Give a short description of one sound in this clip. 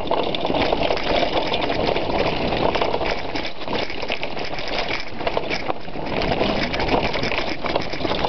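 Bicycle tyres rattle and crunch over a rough rocky trail.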